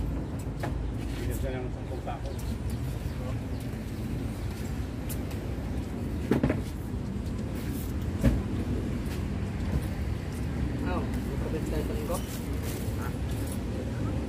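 Young men talk casually nearby.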